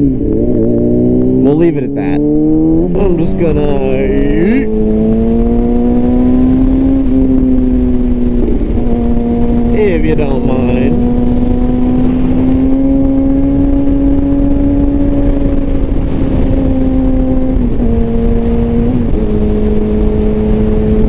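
A motorcycle engine hums steadily at cruising speed, briefly shifting pitch with a gear change.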